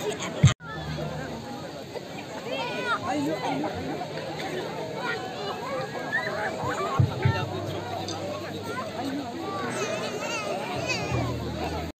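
A crowd of men, women and children chatters and shouts outdoors.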